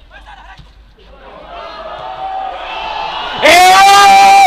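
Football players shout across an open field outdoors.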